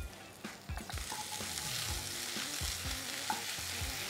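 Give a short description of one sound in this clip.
A wooden spatula scrapes and stirs vegetables in a pan.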